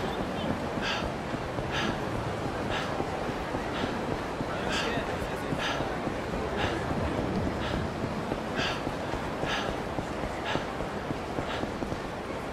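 Footsteps run quickly along a hard pavement.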